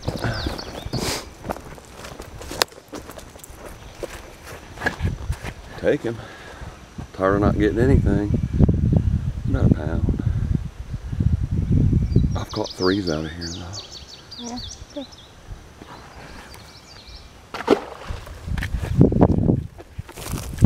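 A middle-aged man talks close to the microphone with animation, outdoors.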